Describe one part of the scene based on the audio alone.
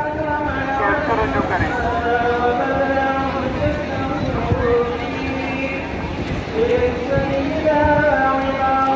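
A huge crowd chants loudly together outdoors.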